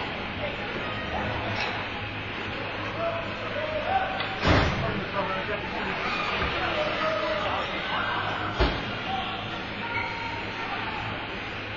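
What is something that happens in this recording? Skates scrape and glide on ice in a large echoing rink.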